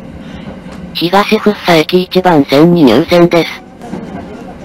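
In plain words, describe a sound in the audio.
Train brakes squeal loudly as the train slows.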